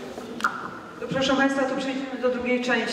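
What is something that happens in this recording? A young woman speaks into a microphone over a loudspeaker.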